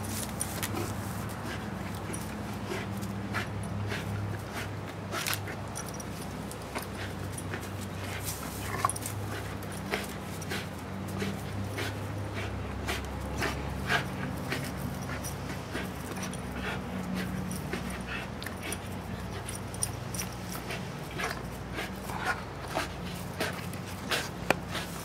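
A dog growls steadily.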